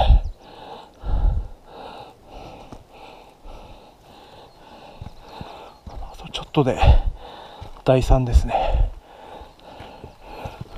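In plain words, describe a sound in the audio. Footsteps crunch on a dirt trail.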